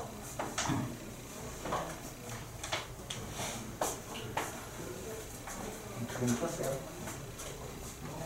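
A young man speaks calmly, as if lecturing.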